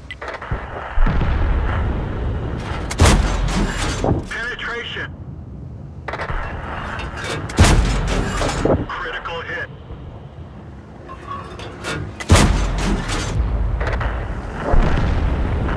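A tank cannon fires with loud, sharp booms.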